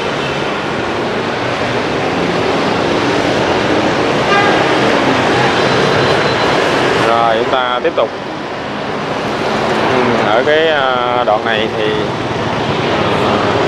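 Motorbike engines hum and buzz as traffic passes close by.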